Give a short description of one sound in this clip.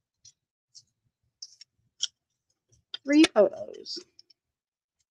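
Scissors snip through thin paper in short, crisp cuts.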